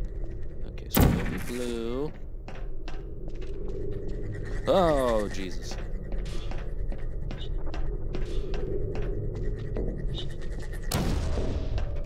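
A sci-fi gun fires with a sharp, ringing zap.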